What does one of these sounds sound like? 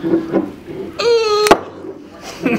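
A cork squeaks as it slides out of a bottle neck.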